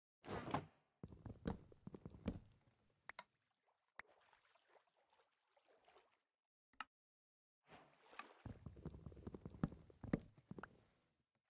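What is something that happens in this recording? Blocks break with short crunching knocks.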